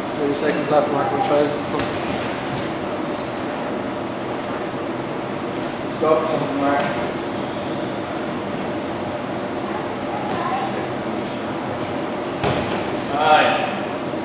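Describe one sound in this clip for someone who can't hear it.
A man speaks in short bursts nearby.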